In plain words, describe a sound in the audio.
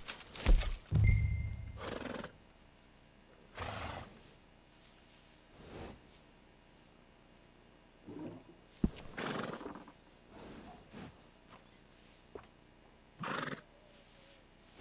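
A horse snorts and huffs close by.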